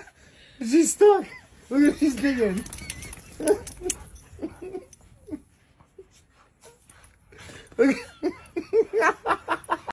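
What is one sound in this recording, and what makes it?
Huskies howl and yowl in short bursts.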